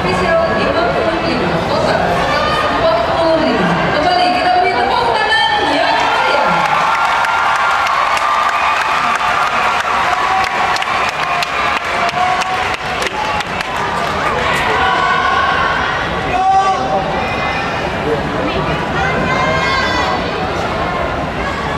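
A marching band plays brass horns.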